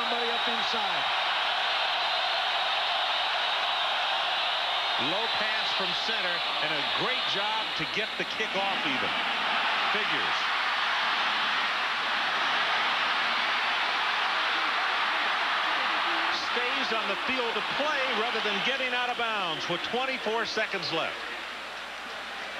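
A large crowd roars and cheers in a big stadium.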